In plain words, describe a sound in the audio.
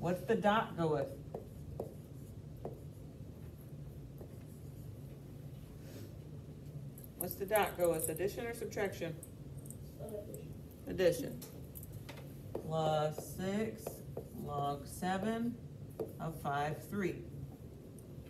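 A woman speaks calmly and explains, close by.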